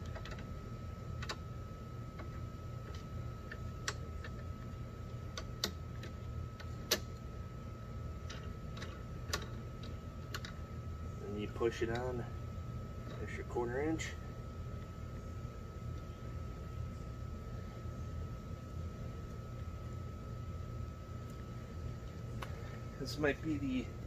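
Small metal parts click and tap.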